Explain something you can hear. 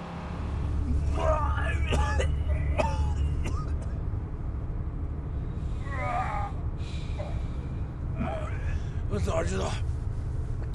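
A young man speaks with strain, close by.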